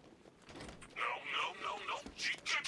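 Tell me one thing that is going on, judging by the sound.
A young man talks into a headset microphone with animation.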